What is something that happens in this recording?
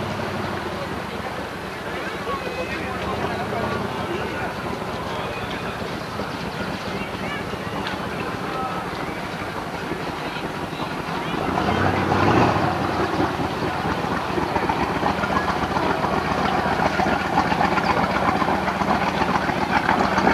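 A motorboat engine hums nearby.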